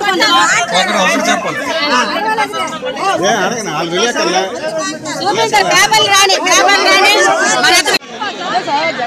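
A crowd of women shout and talk over one another close by.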